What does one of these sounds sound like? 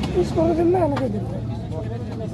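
A knife knocks against a wooden board.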